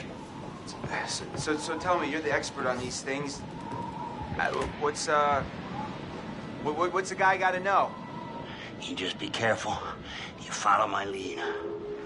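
A young man speaks tensely, close by.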